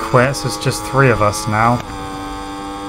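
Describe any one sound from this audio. A racing motorcycle engine revs sharply up and down several times.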